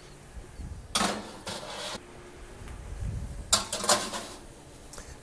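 A metal tray scrapes and rattles as it slides onto an oven rack.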